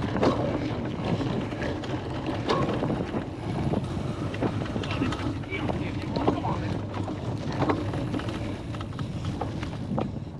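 Wind blows across an open field.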